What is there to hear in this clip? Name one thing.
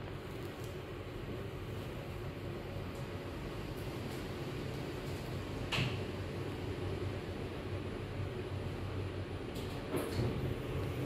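A lift hums steadily as it rises.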